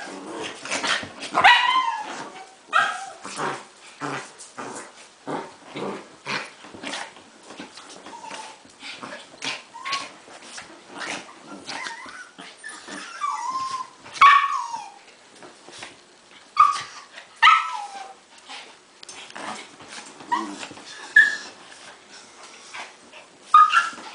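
Two small dogs play-fight, growling and snarling close by.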